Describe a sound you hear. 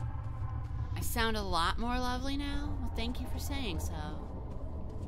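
A young woman speaks expressively into a close microphone, her voice rising and falling in pitch.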